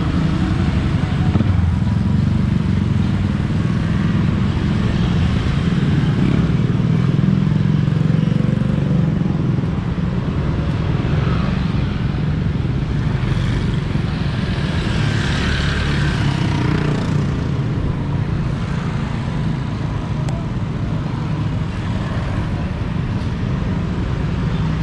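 A motorcycle engine hums steadily close by as it rides along a street.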